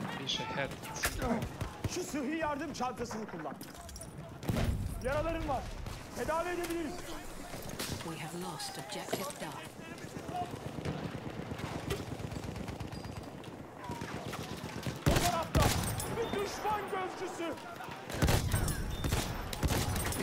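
Rifle shots ring out in sharp single cracks.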